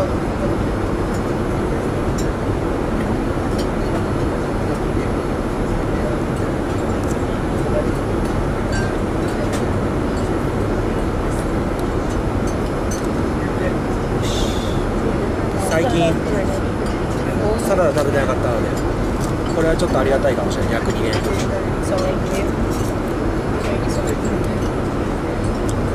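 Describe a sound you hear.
Cutlery clinks lightly against dishes.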